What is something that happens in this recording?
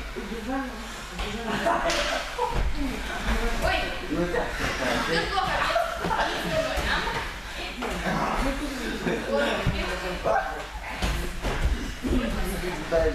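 Bodies thump and shuffle on gym mats.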